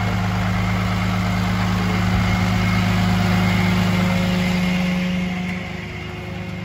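A truck's diesel engine idles close by with a low steady rumble.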